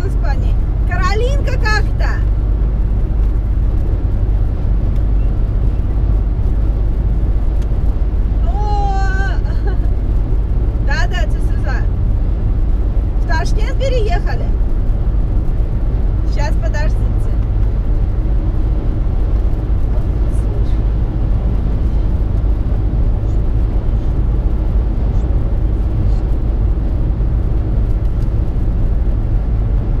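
A car's engine hums and its tyres roar steadily on a highway.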